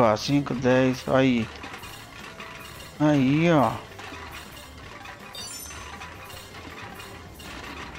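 A shopping cart rattles as it rolls along.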